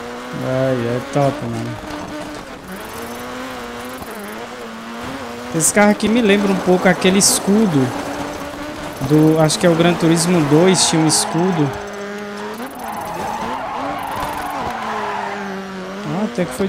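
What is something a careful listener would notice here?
A racing car engine revs and roars, rising and falling in pitch as it changes gear.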